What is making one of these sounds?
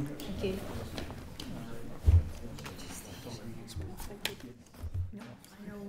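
Several men and women chatter nearby in a room.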